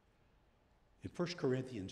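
An elderly man speaks calmly into a microphone in a large room.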